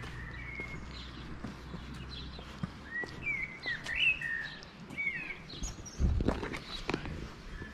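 A shallow stream trickles and babbles nearby.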